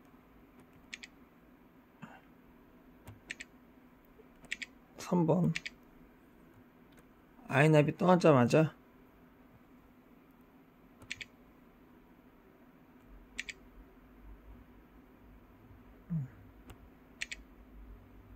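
A navigation device beeps briefly when its touchscreen is tapped.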